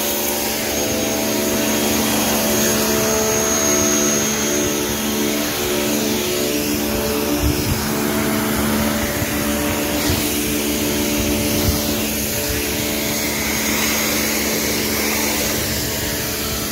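A jet of water hisses hard against a tiled surface.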